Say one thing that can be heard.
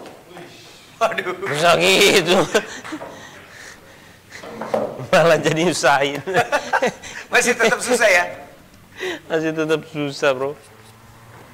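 A young man laughs loudly nearby.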